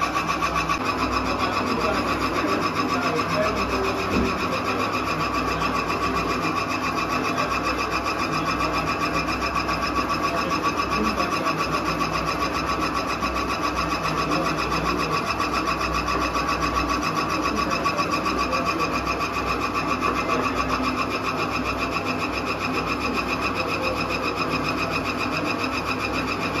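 Grain crunches and rattles as a mill grinds it.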